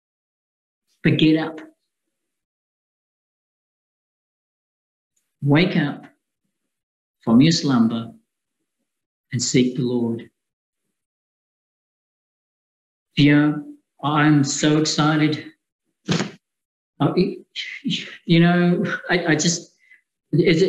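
A man speaks calmly into a microphone, close up, with pauses.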